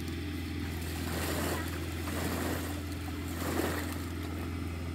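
Water splashes and churns as a man thrashes through it.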